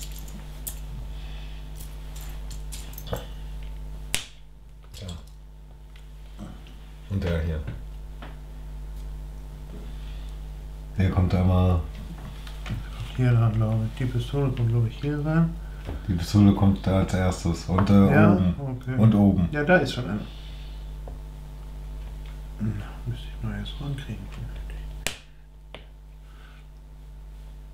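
Small plastic bricks click and rattle under fingers.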